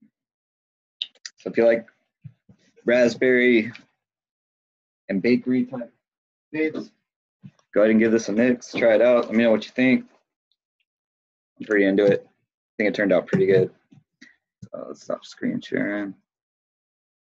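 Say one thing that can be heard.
A man talks calmly and close into a microphone, in short bursts with pauses.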